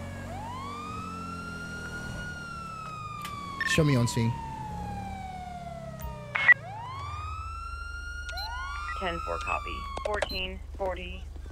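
A police siren wails and sweeps up and down.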